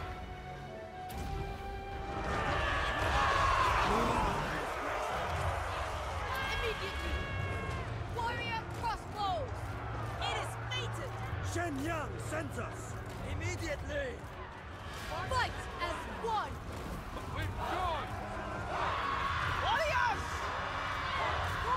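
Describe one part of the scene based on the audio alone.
Battle noise from a game clashes and roars.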